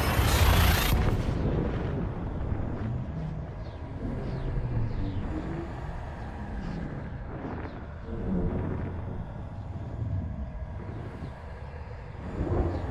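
A spaceship's engine hums low and steady.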